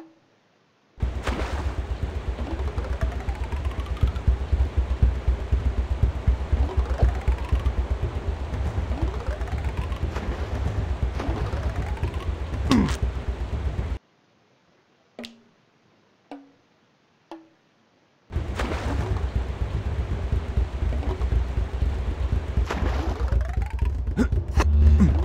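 Rushing water roars steadily.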